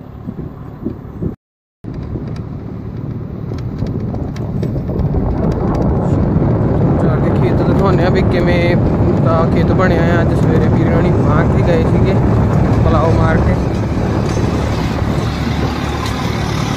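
A tractor engine rumbles, growing louder as it draws near.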